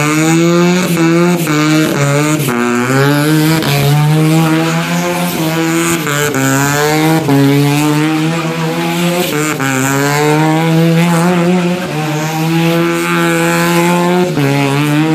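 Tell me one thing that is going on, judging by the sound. A car engine revs hard and roars throughout, rising and falling in pitch.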